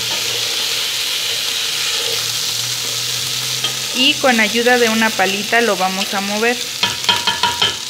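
A spatula scrapes and stirs dry rice in a metal pot.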